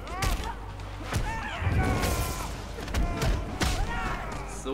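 Heavy punches and kicks land with sharp thuds.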